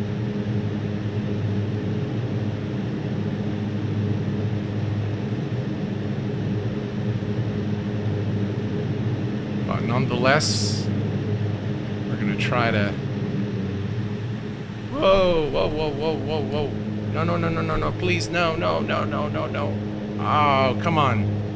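Propeller engines drone steadily.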